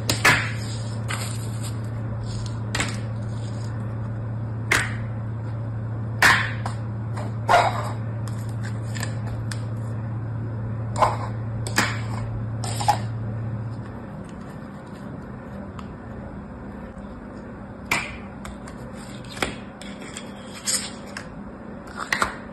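Plastic sand moulds tap and click as a hand sets them down and picks them up.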